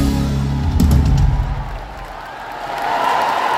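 A band plays loud music.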